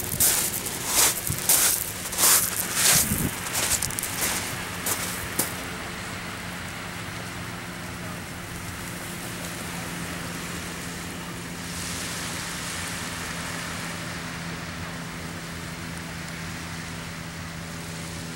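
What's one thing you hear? Small waves wash gently onto the shore.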